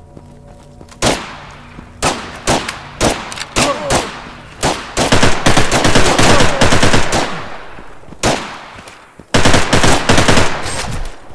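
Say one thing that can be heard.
Gunshots crack in single shots and rapid bursts.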